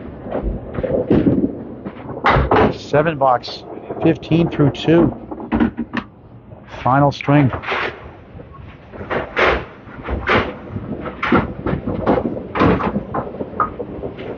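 A bowling ball rolls with a low rumble down a wooden lane.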